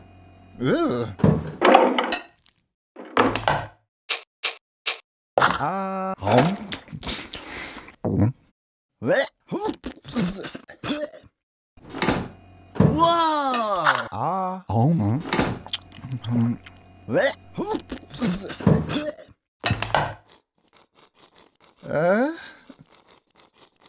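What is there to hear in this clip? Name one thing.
A cartoon character chomps and munches food with comic sounds.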